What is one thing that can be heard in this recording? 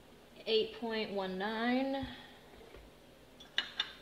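A metal pan is set down on a hard counter with a clunk.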